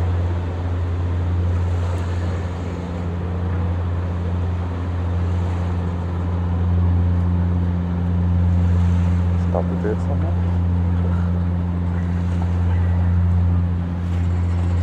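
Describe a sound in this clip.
A jet engine roars steadily as an airliner taxis away.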